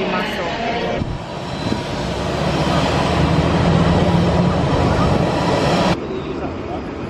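A jet airliner's engines roar steadily as it taxis.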